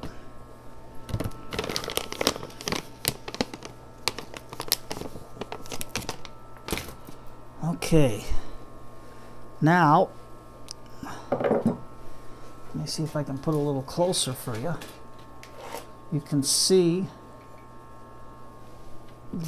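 Soil and a pot rustle and knock as hands work a plant loose.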